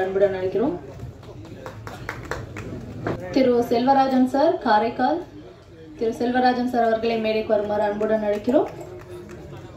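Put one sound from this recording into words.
A young woman speaks calmly through a microphone over loudspeakers.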